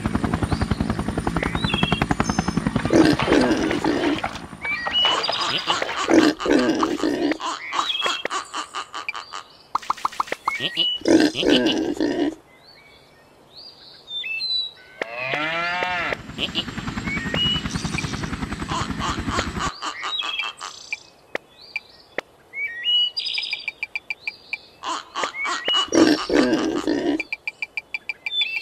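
Cartoon chickens cluck.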